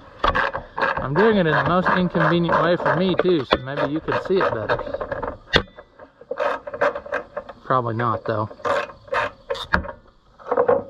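A socket wrench clicks as a bolt is turned.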